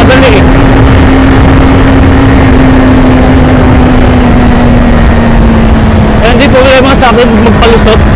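A parallel-twin sport bike engine hums while cruising at speed.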